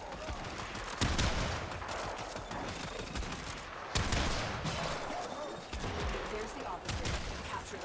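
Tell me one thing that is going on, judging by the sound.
Heavy blasts boom in a game fight.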